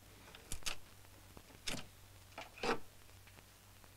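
A metal tool scrapes and taps against wood.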